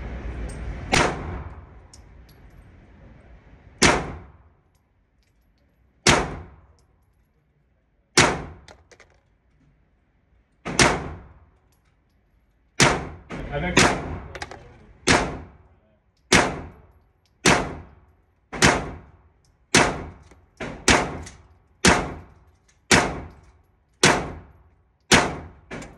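Pistol shots ring out one at a time, each with a short echo, and come faster later on.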